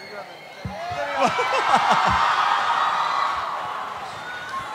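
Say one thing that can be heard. A crowd cheers and laughs outdoors.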